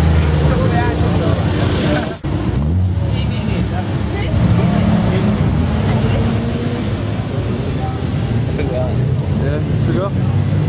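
A car engine idles and rumbles nearby.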